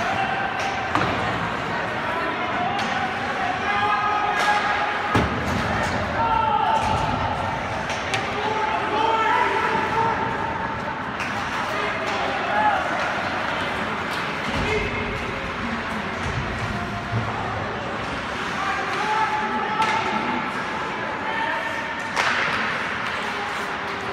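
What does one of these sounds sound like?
A crowd of spectators chatters and cheers in a large echoing arena.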